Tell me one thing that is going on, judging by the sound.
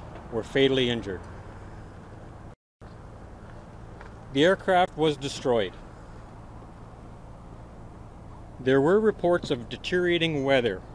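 A man speaks calmly and close into microphones, with pauses.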